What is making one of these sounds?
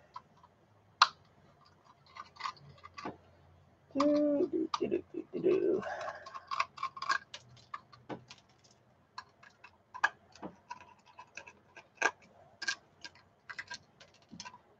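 Small metal parts click and tap as a hard drive is taken apart by hand.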